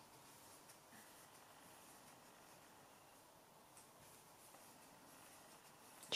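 A crochet hook softly rustles against yarn.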